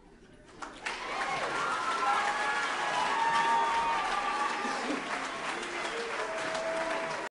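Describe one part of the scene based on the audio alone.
An audience cheers and whoops.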